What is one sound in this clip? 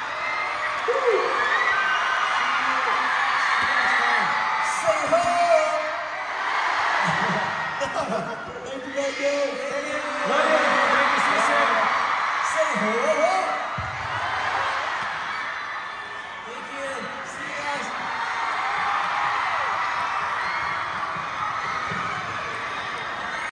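A large crowd screams and cheers loudly in a big echoing hall.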